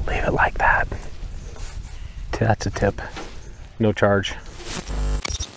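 A man speaks calmly outdoors, close by.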